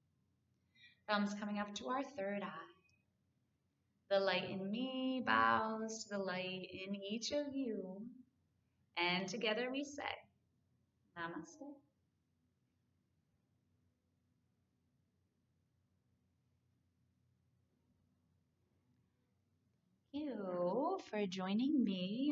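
A woman speaks calmly and gently, close to a microphone.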